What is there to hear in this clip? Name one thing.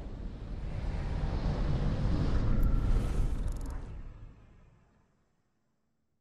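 Loud, rumbling game music swells and then fades to silence.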